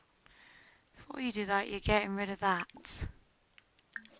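A young woman speaks into a headset microphone.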